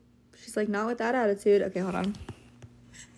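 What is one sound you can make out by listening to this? A young woman talks close up with animation.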